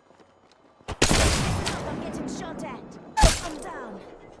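A sniper rifle fires loud, booming shots.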